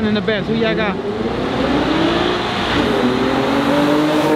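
A car engine revs loudly and rises in pitch.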